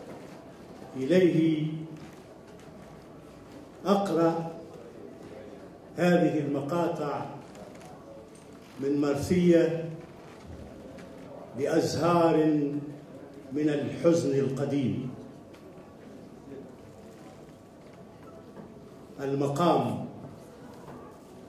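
An elderly man speaks slowly and with feeling into a microphone, with long pauses.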